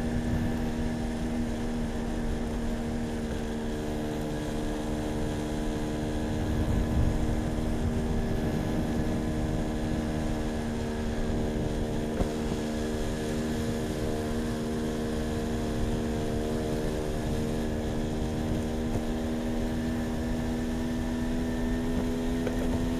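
An engine hums steadily.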